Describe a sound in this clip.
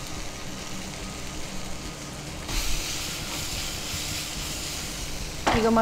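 A spoon scrapes and stirs food in a metal pan.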